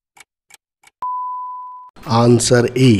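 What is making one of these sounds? An electronic beep sounds once.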